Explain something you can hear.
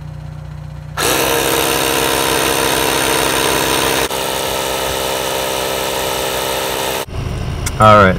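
An air compressor hums and buzzes steadily.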